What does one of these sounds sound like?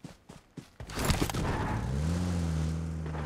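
A car engine starts up and runs with a steady hum.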